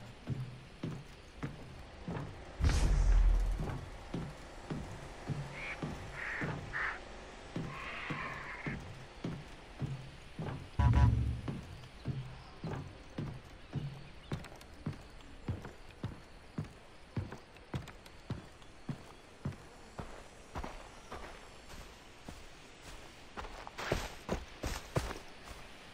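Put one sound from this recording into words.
Footsteps thump steadily on a metal roof and then on soft ground.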